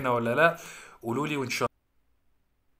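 A young man speaks with animation close to the microphone.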